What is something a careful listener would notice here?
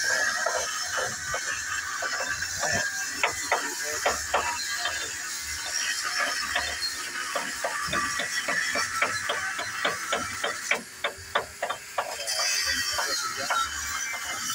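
A hammer chips slag off a metal weld with quick, sharp taps.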